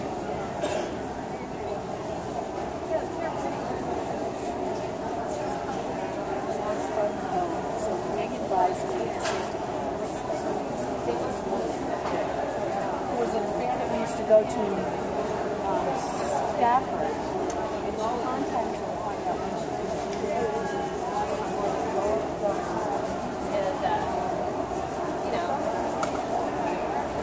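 Many people talk in a murmur throughout a large echoing hall.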